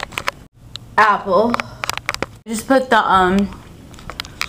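A young woman speaks close to the microphone.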